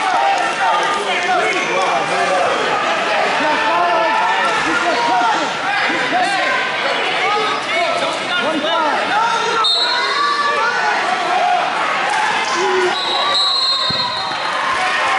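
A crowd of spectators chatters and shouts throughout a large echoing hall.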